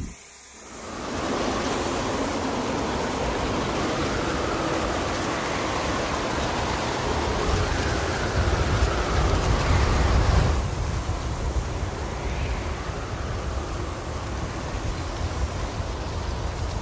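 A leaf blower roars steadily, blowing grass clippings.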